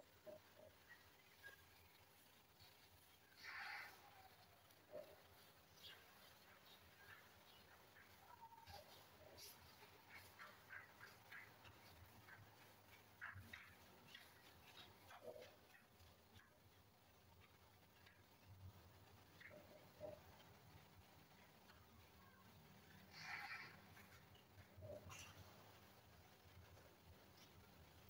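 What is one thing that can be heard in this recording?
Hands rub and squeeze oiled skin with soft, slippery sounds.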